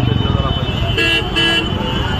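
Vehicle horns honk in short bursts.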